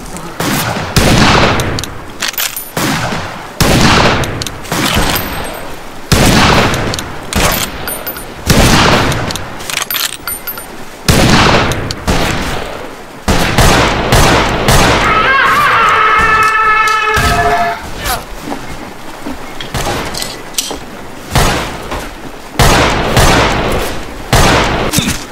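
Gunshots boom again and again, loud and close, with echoing tails.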